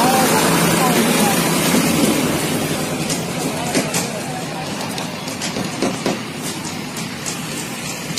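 Workers scrape soil with hoes.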